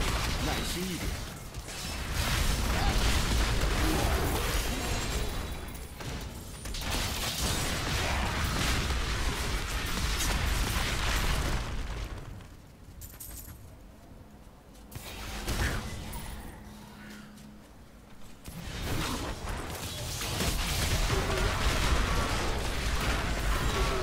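Game spells and explosions crackle and boom.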